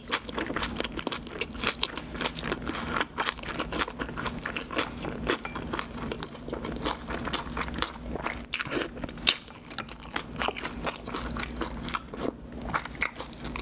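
Chopsticks clink against a bowl.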